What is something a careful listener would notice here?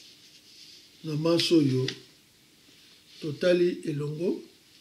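An elderly man speaks calmly and slowly, close by, in short phrases.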